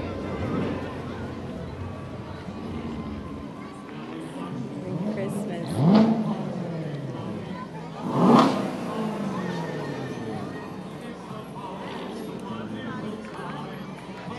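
A crowd murmurs outdoors along a street.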